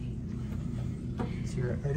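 A finger presses an elevator button with a soft click.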